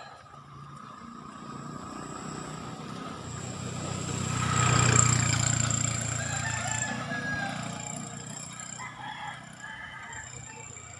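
A tractor engine rumbles closer, passes loudly and fades away.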